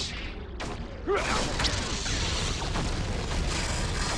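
Lightsabers clash with buzzing strikes.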